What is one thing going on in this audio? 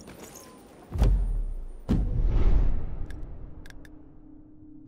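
A deep whoosh swells and fades.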